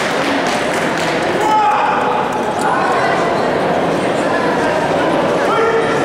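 A male referee calls out commands.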